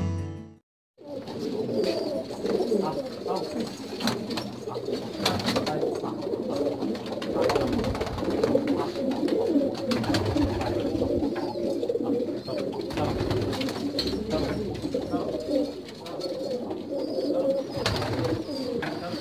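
Many pigeons coo in a low, steady murmur.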